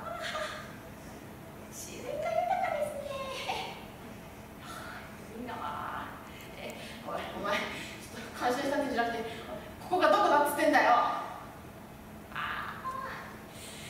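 A young woman laughs through a microphone.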